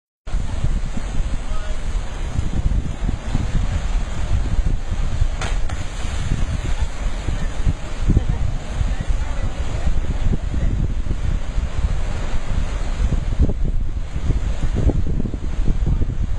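Ocean waves surge and crash against rocks.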